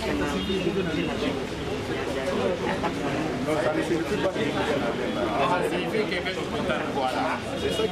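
An elderly man laughs and speaks with animation.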